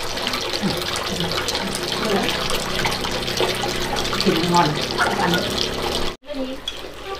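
Two women talk quietly nearby.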